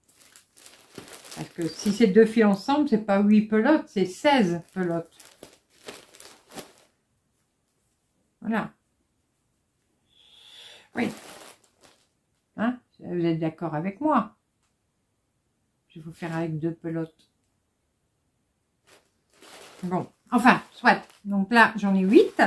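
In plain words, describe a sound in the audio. A middle-aged woman talks calmly and close by, with gaps of silence.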